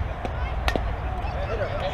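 A softball bat cracks against a ball outdoors.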